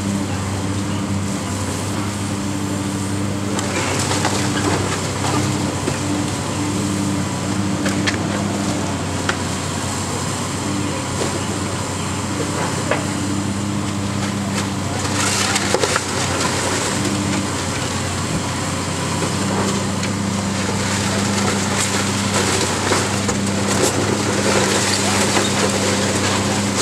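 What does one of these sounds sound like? Concrete and debris crack and crash as a demolition claw tears at a building.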